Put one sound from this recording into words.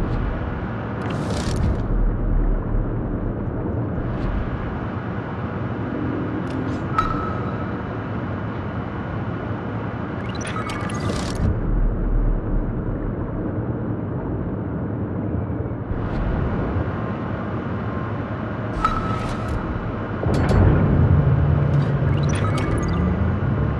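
A submarine's engine hums underwater with a low, steady rumble.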